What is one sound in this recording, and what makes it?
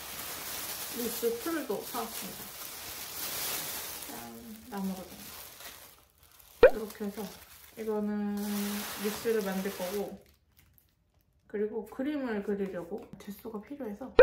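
A young woman speaks calmly and softly close to a microphone.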